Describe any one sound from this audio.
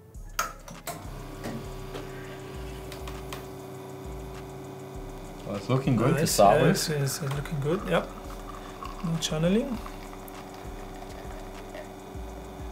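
An espresso machine hums steadily.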